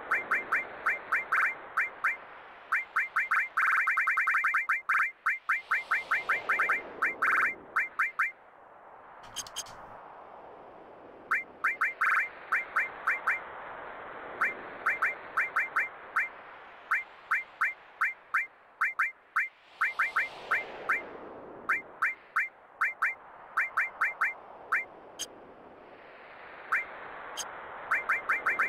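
Game menu cursor blips tick rapidly and repeatedly.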